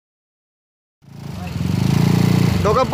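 A scooter engine idles close by.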